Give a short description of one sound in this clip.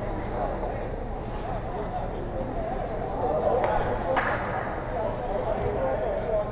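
Players call out across an echoing rink.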